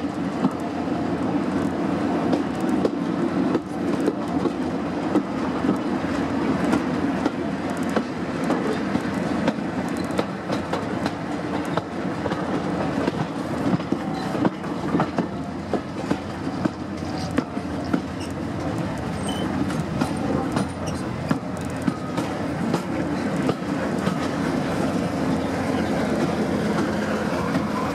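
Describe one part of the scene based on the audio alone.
Train carriages rumble and rattle steadily along the track.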